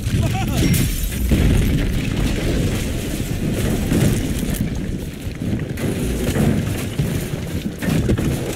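Debris rumbles and crashes down.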